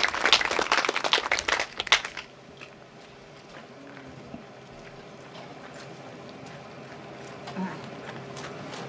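A small brass band plays outdoors.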